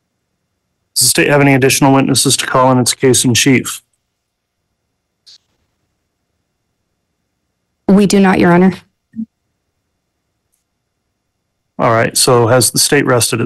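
A man speaks calmly, heard through an online call.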